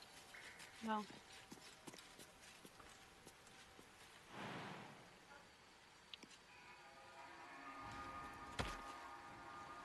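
Footsteps scuff lightly on stone.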